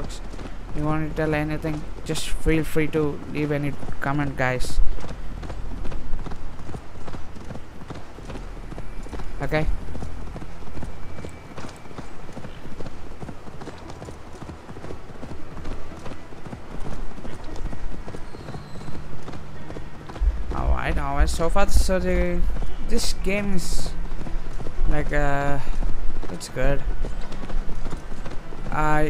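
Footsteps run on a dirt path.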